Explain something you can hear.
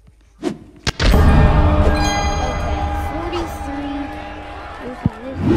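A loud fanfare of tones plays as a fighter is knocked out.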